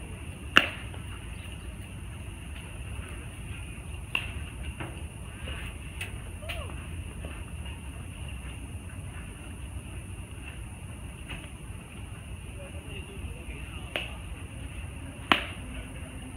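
A ball smacks into a leather glove.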